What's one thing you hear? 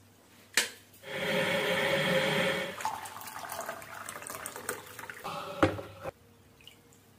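Water pours and splashes into a cup.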